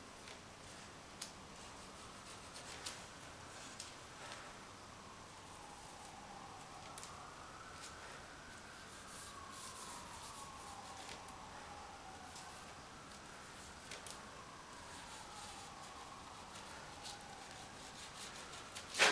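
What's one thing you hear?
Plastic dabs and scrapes softly against a painted surface in quick, uneven taps.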